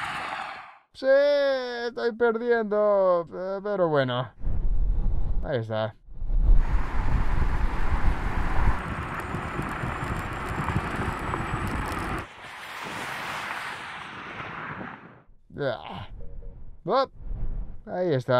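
A man talks with animation inside a car.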